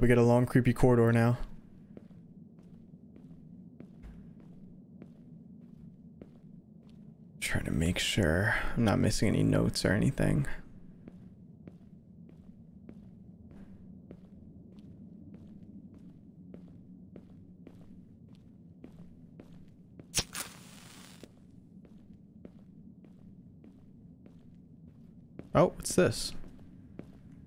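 A young man speaks with animation close to a microphone.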